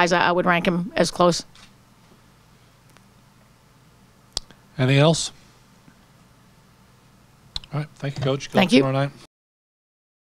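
A woman speaks calmly into a microphone, with pauses.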